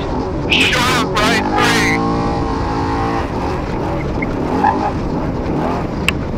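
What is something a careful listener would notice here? A vehicle's engine roars and revs while driving over rough ground.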